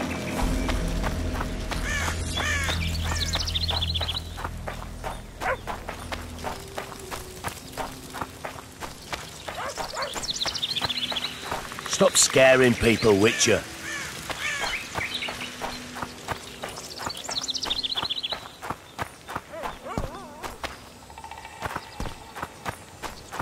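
Footsteps crunch steadily on grass and dirt.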